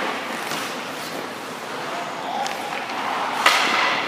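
A hockey stick strikes a puck with a sharp crack.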